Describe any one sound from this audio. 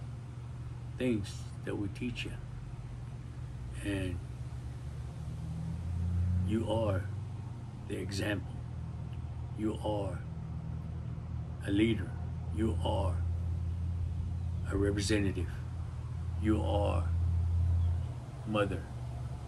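A middle-aged man speaks calmly and slowly, close to a microphone, with pauses between phrases.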